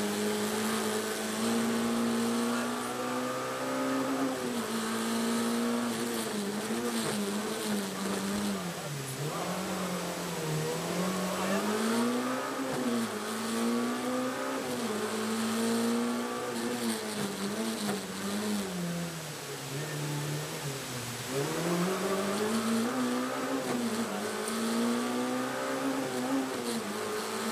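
A rally car engine roars loudly from inside the cabin, revving up and dropping again and again.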